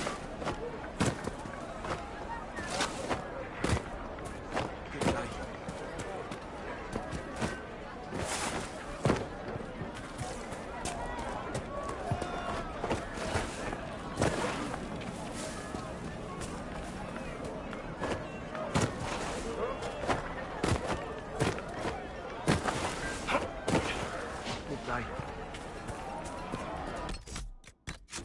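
Footsteps rustle through leafy plants as a character runs.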